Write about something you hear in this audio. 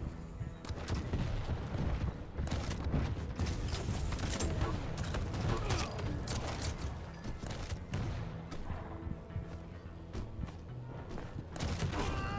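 A gun fires rapid shots in a video game.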